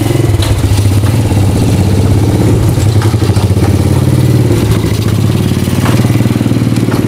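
Sidecar wheels rattle over a rough paved path.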